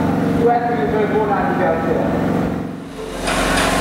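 A young man speaks into a microphone over a loudspeaker.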